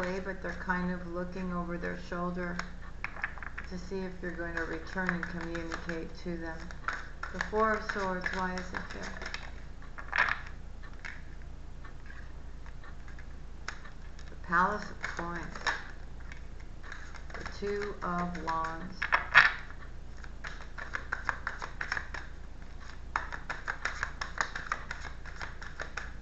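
Cards shuffle and riffle in a woman's hands.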